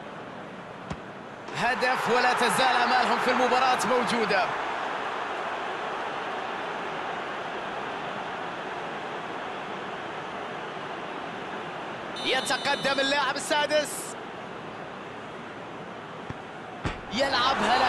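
A football is struck with a sharp thud.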